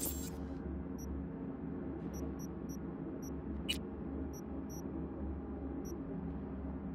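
Short electronic blips sound from a game menu.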